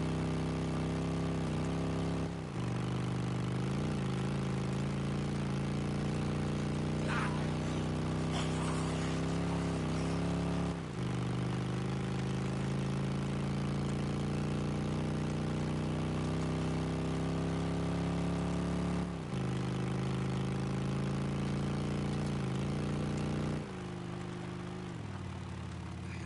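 A motorcycle engine drones steadily, dipping briefly as gears shift.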